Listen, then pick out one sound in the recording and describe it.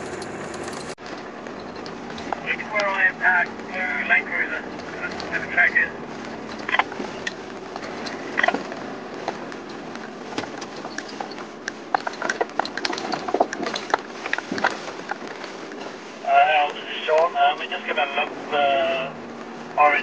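A vehicle rattles and knocks over rough, bumpy ground.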